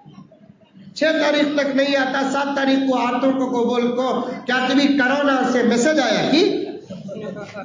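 A man chants in a drawn-out voice through a microphone.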